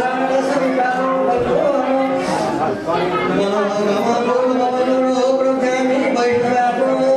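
A man chants a prayer in a steady, sung voice nearby.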